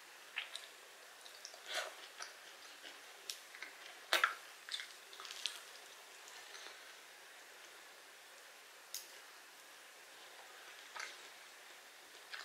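A young woman chews food wetly, close up.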